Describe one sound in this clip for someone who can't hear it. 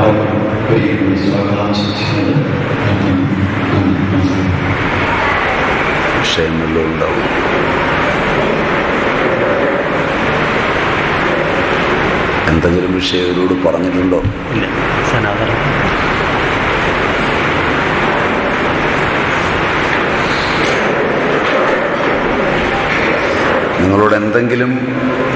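A middle-aged man speaks cheerfully nearby, with a laugh in his voice.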